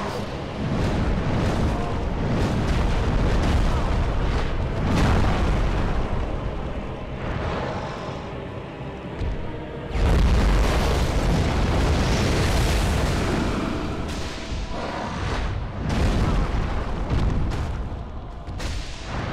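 Heavy blows thud and rumble as attacks land.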